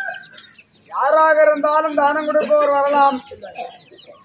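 A man sings loudly in a long, wavering voice.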